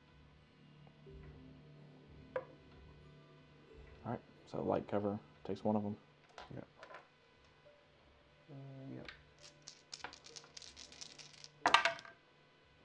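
Dice roll and clatter softly onto a felt-lined tray.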